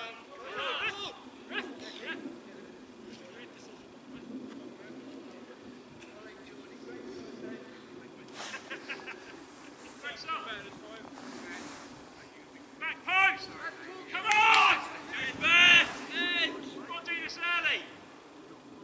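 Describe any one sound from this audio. Footballers shout to each other across an open field.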